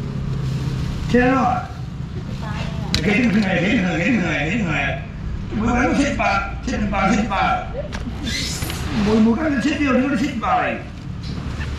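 A middle-aged man talks nearby with animation.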